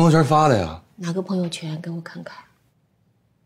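A woman asks a question calmly and closely.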